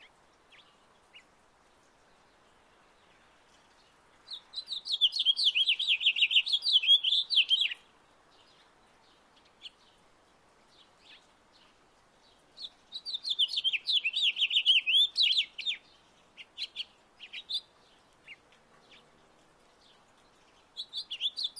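Small birds chirp and twitter in quick bursts close by.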